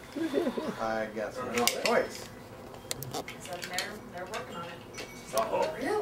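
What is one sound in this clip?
A plastic toy rattles in a man's hands.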